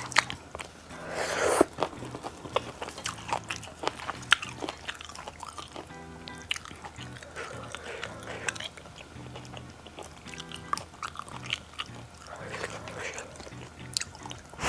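A woman slurps noodles loudly close to a microphone.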